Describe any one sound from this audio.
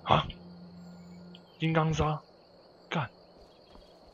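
A young man speaks briefly into a nearby microphone.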